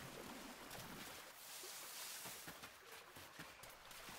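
Quick footsteps patter on dirt.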